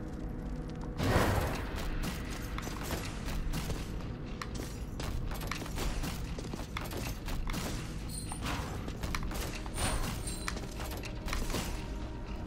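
A small cartoon fighter's axe swings whoosh and clang in quick bursts.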